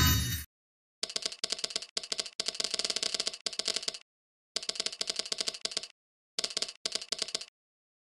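Rapid chiming game tones ring out in quick bursts.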